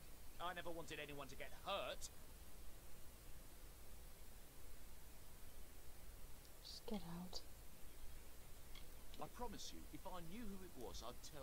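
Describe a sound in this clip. A young woman talks casually, close to a microphone.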